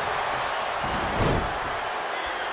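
A body thuds heavily onto a wrestling mat.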